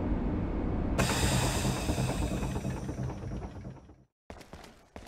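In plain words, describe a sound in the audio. A heavy sealed door hisses as it opens.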